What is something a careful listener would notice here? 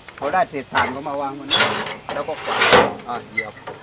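A metal drawer clatters as it is pulled and pushed.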